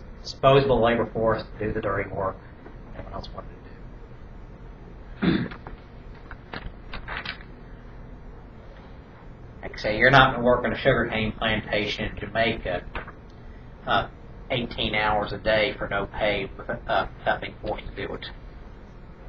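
A young man speaks aloud in a small room, reading out in bursts with pauses.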